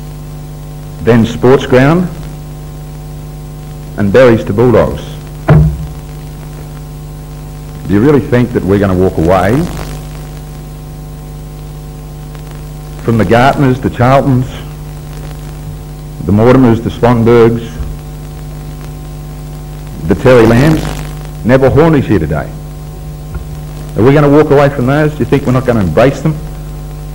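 A middle-aged man speaks slowly through a microphone in short phrases with long pauses.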